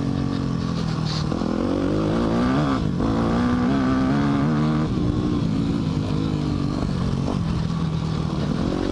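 A small motor whines steadily, its pitch rising and falling.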